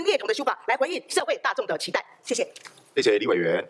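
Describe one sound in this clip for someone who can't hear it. A woman speaks clearly through a microphone.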